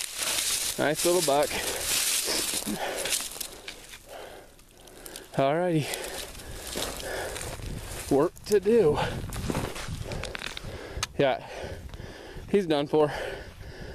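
Footsteps crunch through dry brush and gravel.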